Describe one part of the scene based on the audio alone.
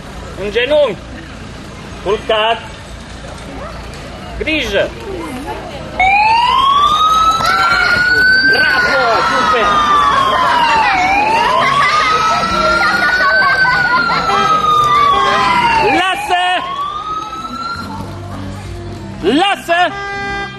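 A dog barks loudly.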